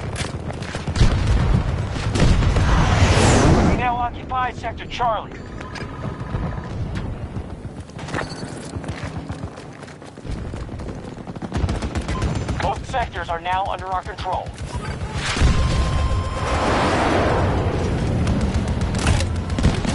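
Loud explosions boom and rumble.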